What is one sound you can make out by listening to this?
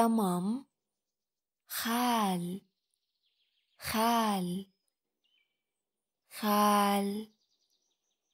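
A man says a single word slowly and clearly, several times with pauses.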